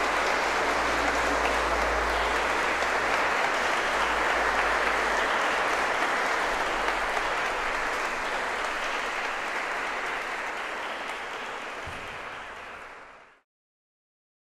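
An audience applauds in a large echoing hall, then the applause fades away.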